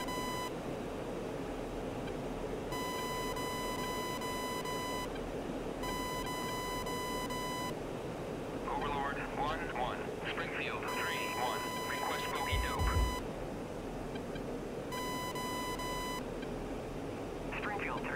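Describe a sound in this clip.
A jet engine drones steadily, heard from inside the cockpit.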